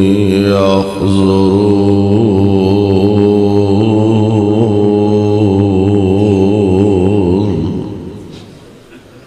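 A man chants in a long, drawn-out melodic voice through a loudspeaker, then trails off into an echo.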